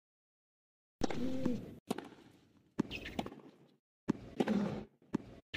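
A tennis racket strikes a ball with sharp pops, back and forth.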